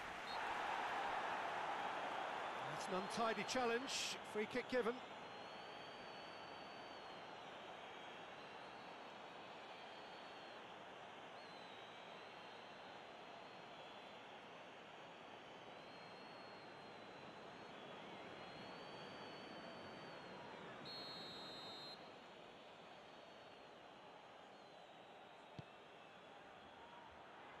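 A large crowd roars and murmurs steadily in a stadium.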